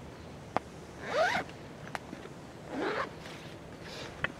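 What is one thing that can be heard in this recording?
A zipper is pulled open on a bag.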